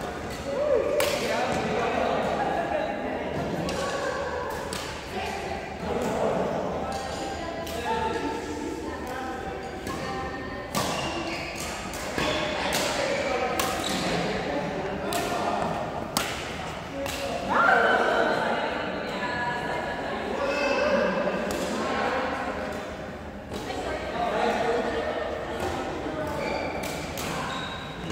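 Young men and women chat and call out across an echoing hall.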